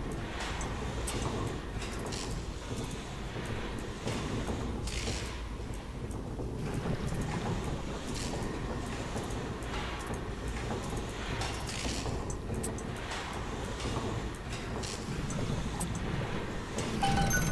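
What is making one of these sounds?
Metal pipe pieces clank as they slide into place.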